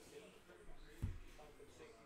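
A stack of cards thumps down on a table.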